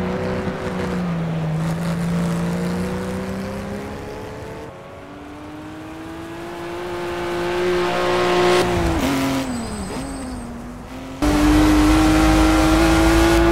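A car engine roars and revs up and down as it races.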